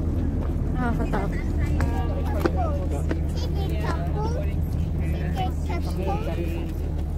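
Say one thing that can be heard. Women talk nearby outdoors.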